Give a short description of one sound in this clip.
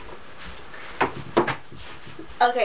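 A young woman laughs loudly close by.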